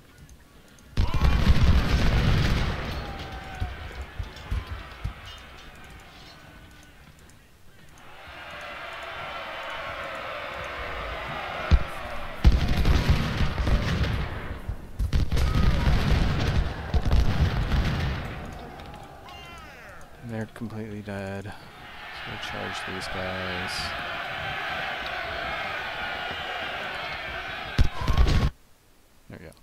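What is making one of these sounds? Musket volleys crackle and rumble in a battle.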